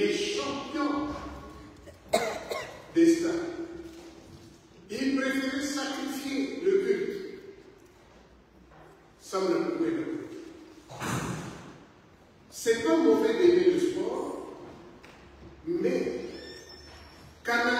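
An elderly man preaches with animation into a microphone, his voice echoing in a large hall.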